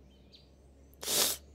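A cartoonish voice sneezes loudly.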